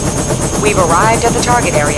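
A heavy armoured machine's engine rumbles steadily.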